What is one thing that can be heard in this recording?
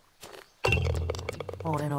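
A golf club taps a ball.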